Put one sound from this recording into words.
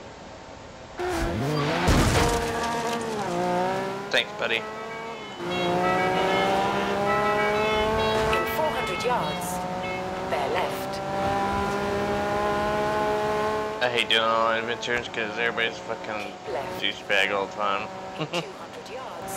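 A car engine revs hard and climbs through the gears.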